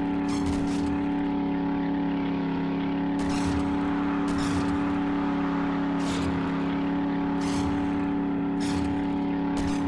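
Truck tyres crunch over snow.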